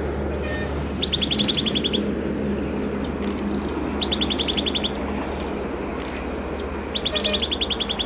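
A small bird sings a rapid, repeated chirping phrase in short bursts.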